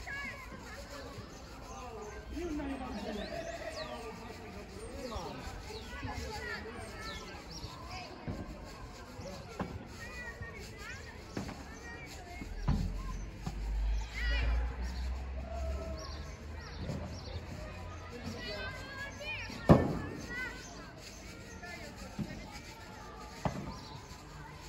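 Men call out to each other across an outdoor court.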